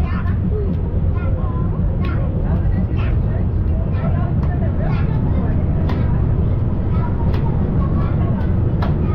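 Passengers chatter quietly nearby.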